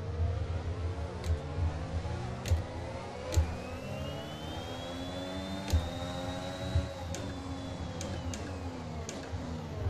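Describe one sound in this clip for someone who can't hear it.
A racing car engine revs and hums steadily, shifting up and down through the gears.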